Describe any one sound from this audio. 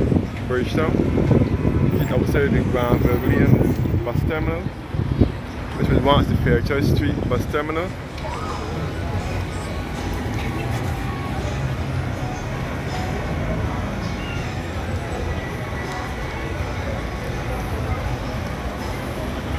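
Cars drive past on a busy street.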